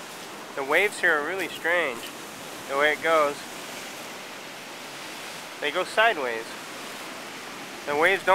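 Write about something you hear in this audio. Waves break and wash onto a pebble beach.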